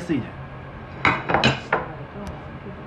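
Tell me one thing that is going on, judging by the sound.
Dishes clatter briefly.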